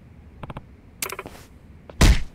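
A man shouts sharply while fighting.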